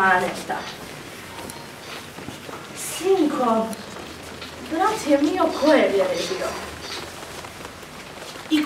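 A young woman sings solo.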